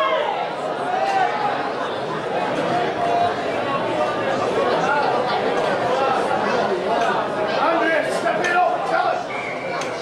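A crowd murmurs from distant stands outdoors.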